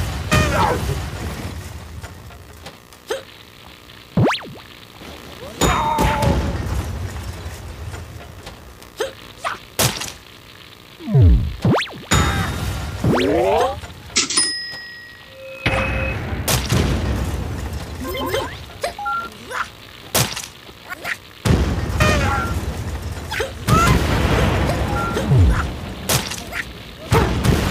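Small guns fire in quick pops in a video game.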